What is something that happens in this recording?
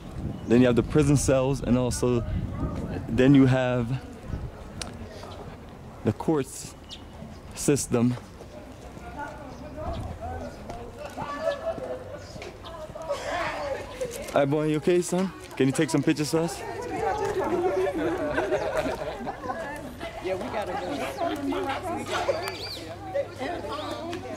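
A group of people chatter in the distance outdoors.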